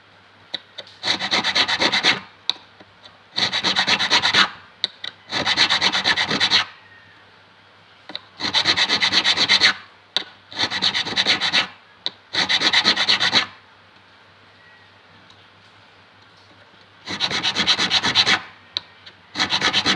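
A metal file rasps in quick bursts of strokes across a guitar fret.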